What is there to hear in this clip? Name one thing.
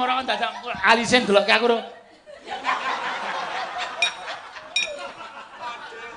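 Women laugh nearby.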